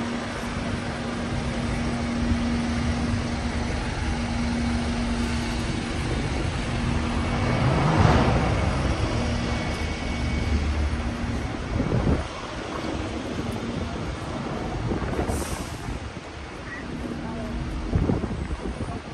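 Busy city traffic rumbles steadily outdoors.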